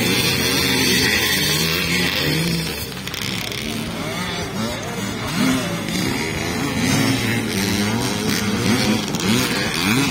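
Dirt bike engines whine and rev up and down at a distance.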